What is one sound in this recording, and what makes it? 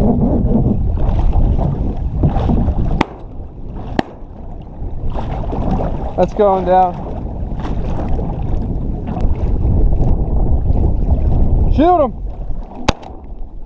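Wind rushes across open water.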